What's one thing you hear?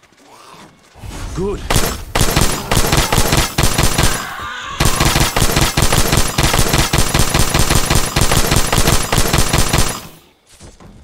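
A heavy gun fires in rapid, rattling bursts.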